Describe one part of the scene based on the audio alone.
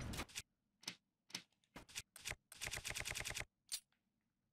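Quick clicking ticks sound as a game menu scrolls.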